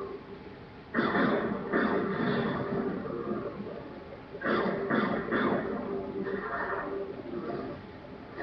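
Blasts and explosions from a video game boom loudly through a television speaker.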